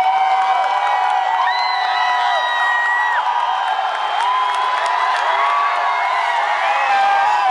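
Drums are played with cymbals crashing.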